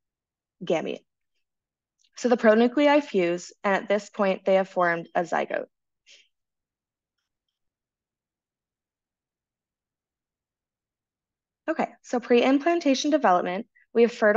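A woman lectures calmly through an online call microphone, pausing between phrases.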